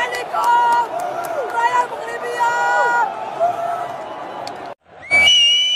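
A woman chants loudly among a cheering crowd.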